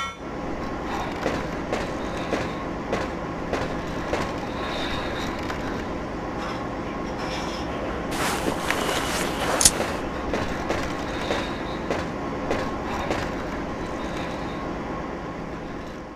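Footsteps clang on a metal floor.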